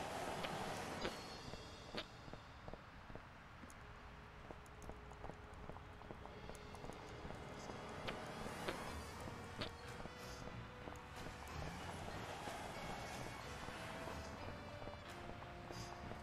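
Footsteps patter on pavement.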